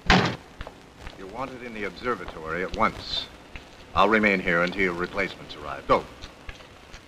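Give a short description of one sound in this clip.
A man speaks in a raised, commanding voice.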